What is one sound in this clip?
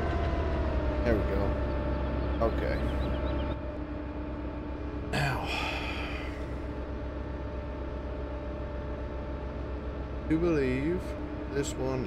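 Hydraulics whine as an excavator arm moves.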